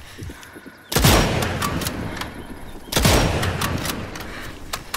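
A sniper rifle fires two loud, echoing shots.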